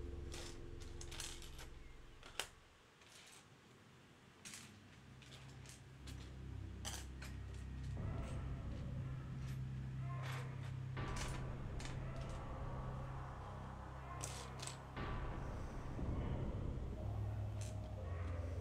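Plastic bricks click and rattle as hands sort through them.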